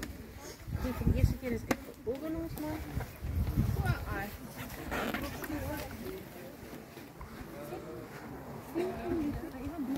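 Several men chat casually close by, outdoors.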